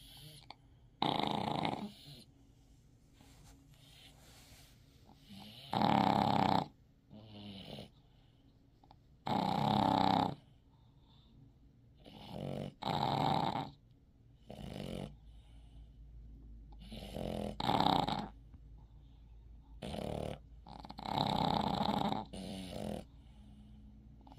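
A dog snores loudly in slow, regular bursts.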